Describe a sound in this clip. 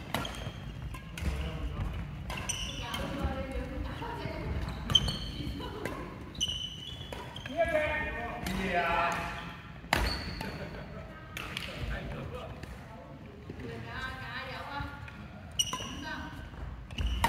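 Shuttlecocks pop off badminton rackets in a large echoing hall.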